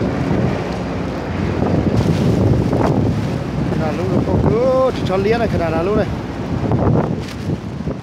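Fast river water rushes and churns.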